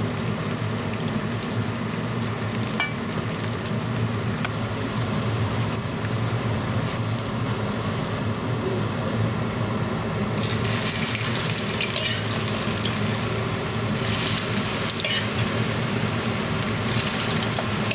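Oil sizzles and bubbles in a frying pan.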